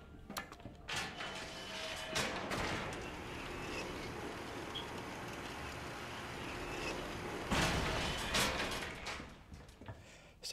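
A lift hums and rattles as it moves.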